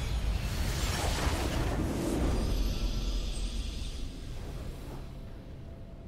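A bright magical whoosh swells into a triumphant game fanfare, then fades.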